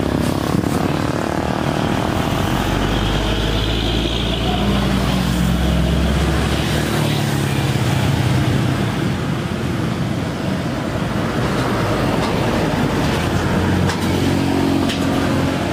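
Electric hair clippers buzz against a man's head.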